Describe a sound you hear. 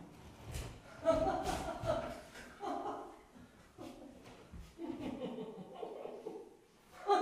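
A man speaks with animation in an echoing hall.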